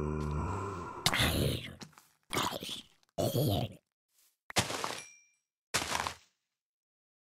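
Blows thud against a monster.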